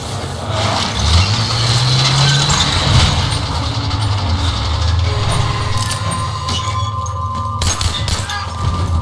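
A tank engine rumbles and revs nearby.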